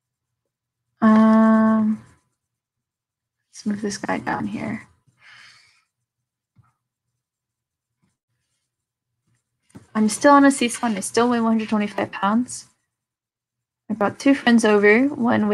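A woman speaks calmly through a microphone, in short bursts with pauses.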